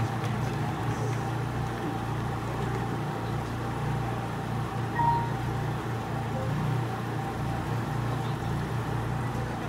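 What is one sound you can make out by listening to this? A band plays music through loudspeakers outdoors.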